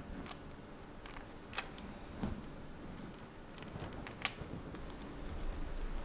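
A chipmunk scrabbles through wood pellet bedding.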